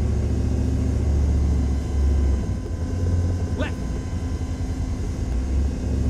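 A deep aircraft engine drones steadily.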